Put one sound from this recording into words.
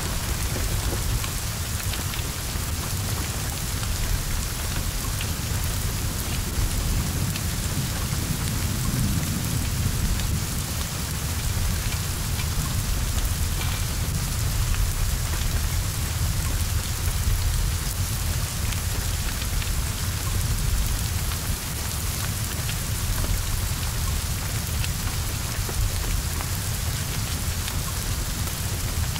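Heavy rain pours steadily.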